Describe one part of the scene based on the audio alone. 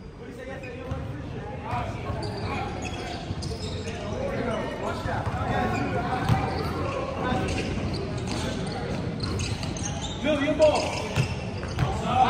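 Several young voices talk and call out in a large echoing gym.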